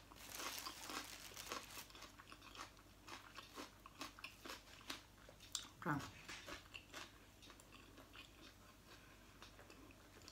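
Dry food crackles and rustles between fingers.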